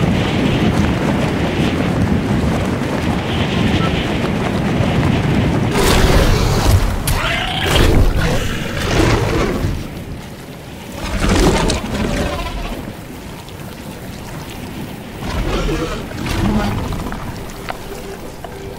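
Wind rushes past a gliding figure in loud, gusting waves.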